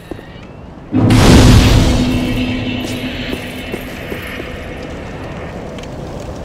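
A fire flares up with a loud whoosh and then crackles.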